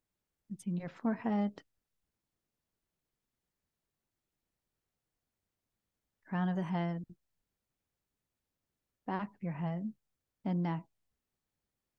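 A woman speaks softly and calmly into a close microphone, in short phrases with long pauses.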